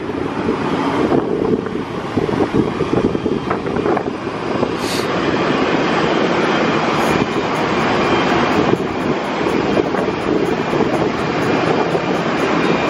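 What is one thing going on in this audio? Wind blows steadily and rushes past, outdoors in the open air.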